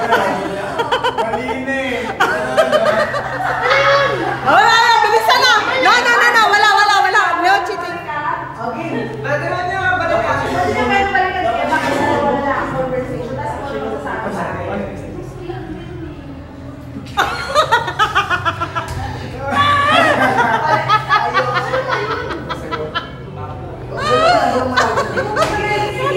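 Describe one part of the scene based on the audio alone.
Boys talk animatedly close by.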